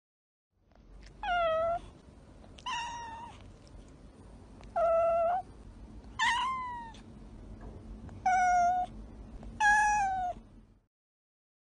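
A young girl hums in short, muffled, high bursts.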